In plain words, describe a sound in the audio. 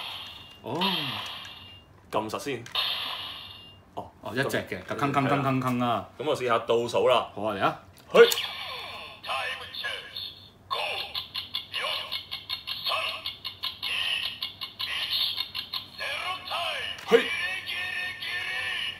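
A toy sword plays loud electronic sound effects and tunes through a small speaker.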